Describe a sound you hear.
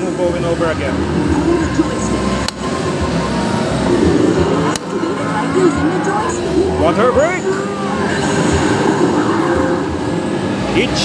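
An arcade game plays busy music and sound effects through its loudspeakers.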